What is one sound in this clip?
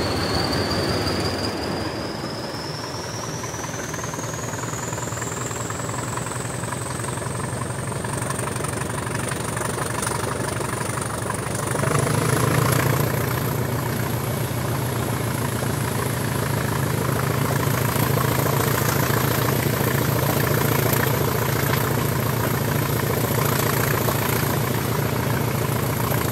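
Train wheels clatter rhythmically on the rails.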